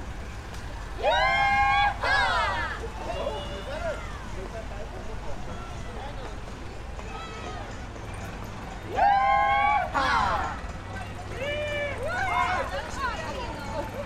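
A young woman and men whoop and shout cheerfully nearby.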